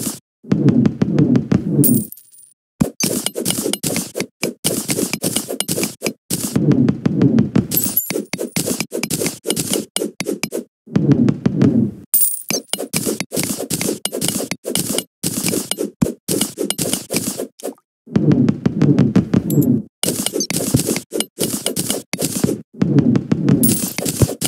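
A pickaxe chips at dirt and stone with quick, repeated knocks.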